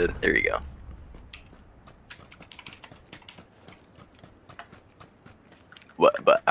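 Footsteps run quickly over dry dirt.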